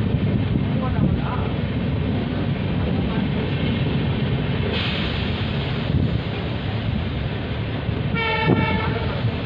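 A train rumbles steadily along the track.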